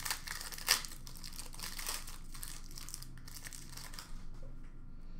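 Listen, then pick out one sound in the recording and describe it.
A foil card wrapper crinkles and rustles in hands.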